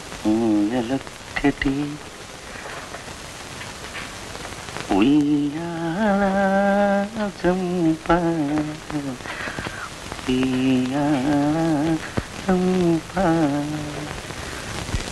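A man sings a slow, wavering melody close by.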